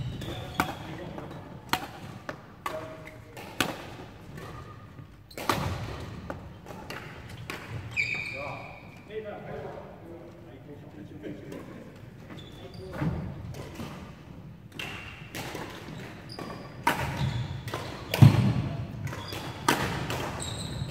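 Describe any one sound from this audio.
Badminton rackets smack a shuttlecock with sharp, echoing pops in a large hall.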